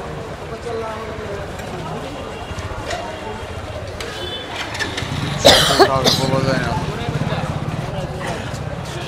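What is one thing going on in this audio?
Motorbike engines idle and rev nearby.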